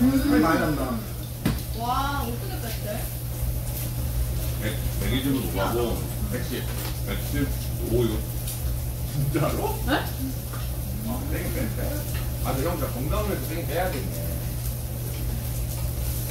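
Cutlery and dishes clink.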